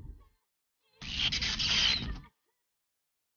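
An energy blast crackles sharply.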